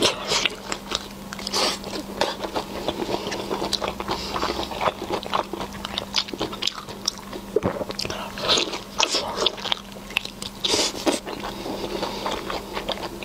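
Soft, sticky food squelches as it is pulled apart by hand.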